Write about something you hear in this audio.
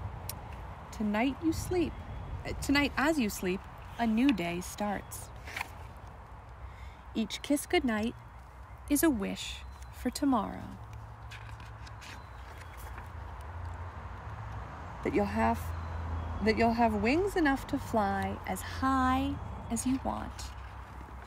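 A woman reads aloud with animation, close by.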